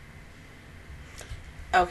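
A young man makes a short, loud sound with his mouth close to a microphone.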